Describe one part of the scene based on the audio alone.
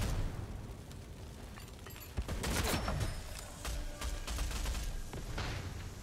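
Flames roar after an explosion.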